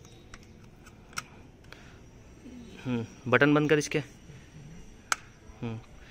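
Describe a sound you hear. Hard plastic clicks and knocks as a toy is handled.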